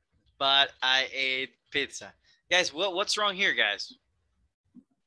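A man speaks calmly and clearly through a microphone on an online call.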